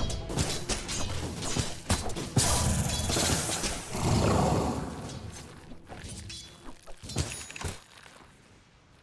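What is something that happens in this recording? Video game spell effects crackle and boom in a fight.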